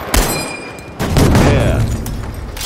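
A gun is reloaded with metallic clanks.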